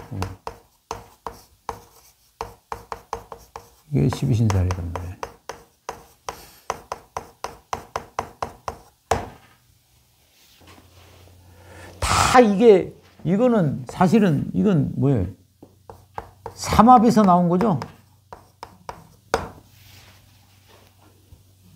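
Chalk taps and scrapes quickly on a blackboard.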